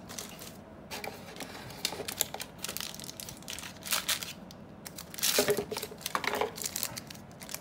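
Cardboard flaps scrape and rustle.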